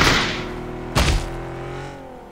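A car crashes into a tree with a heavy thud.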